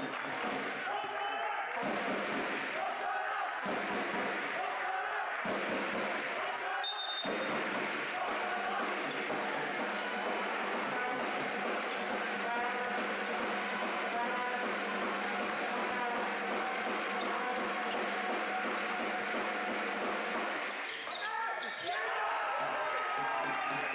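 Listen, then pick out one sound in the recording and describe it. A crowd cheers and chatters loudly in a large echoing hall.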